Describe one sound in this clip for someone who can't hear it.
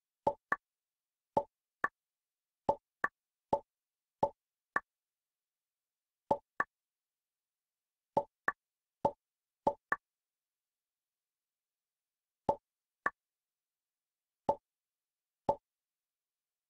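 Short electronic jump sounds blip again and again.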